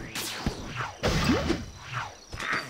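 A wooden object smashes apart with a clatter.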